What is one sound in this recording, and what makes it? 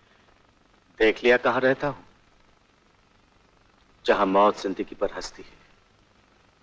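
A man speaks quietly and calmly nearby.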